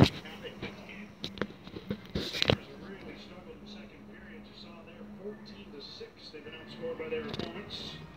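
A hockey game plays quietly from a television.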